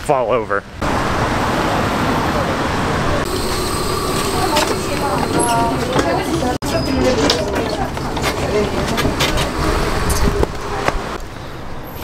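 Traffic and a bus rumble along a busy street outdoors.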